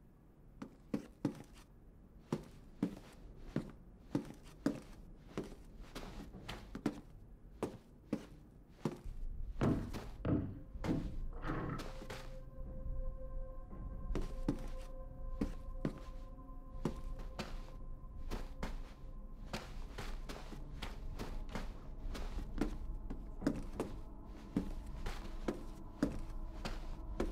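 Footsteps walk slowly across a wooden floor.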